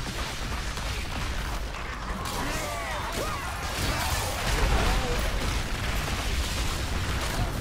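Magic blasts and explosions crackle and boom in a fast battle.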